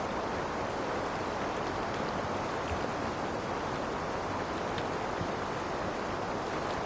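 Water splashes and rushes steadily against a moving boat's hull.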